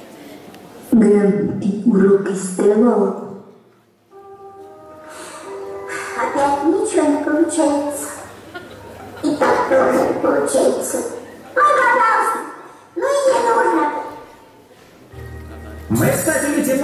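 A young woman speaks with animation through loudspeakers in a large hall.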